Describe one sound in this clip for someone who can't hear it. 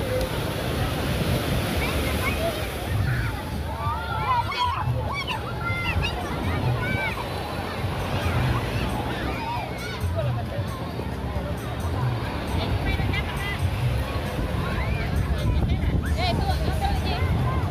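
A young girl talks with animation close by.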